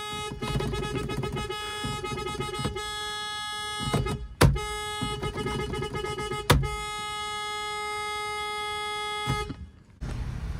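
A car horn blares loudly and steadily.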